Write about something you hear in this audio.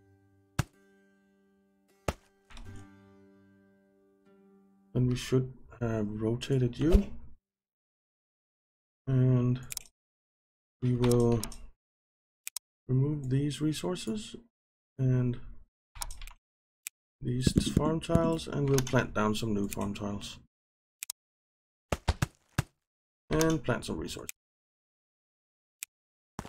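Short soft clicks sound now and then.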